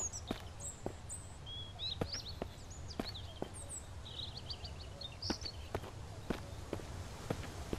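Footsteps crunch slowly over dry ground.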